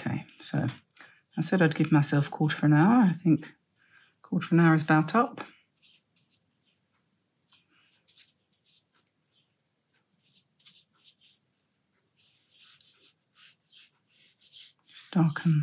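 A paintbrush dabs and swishes softly on paper.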